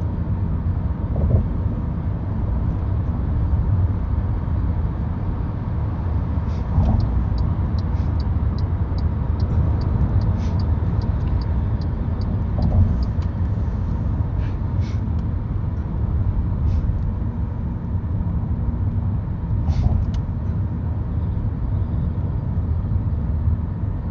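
A car engine and road noise rumble low and steadily.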